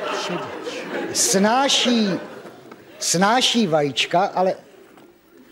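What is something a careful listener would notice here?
An older man speaks into a microphone.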